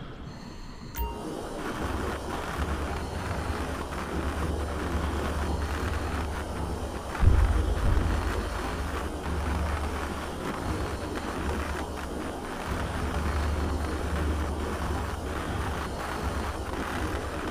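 A cutting torch hisses and crackles underwater.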